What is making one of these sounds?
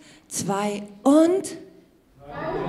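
A woman calls out in short rising, singing tones through a microphone in an echoing hall.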